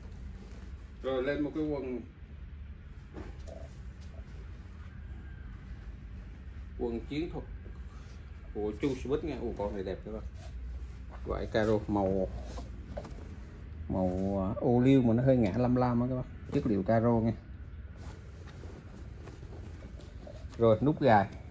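A middle-aged man talks close to the microphone.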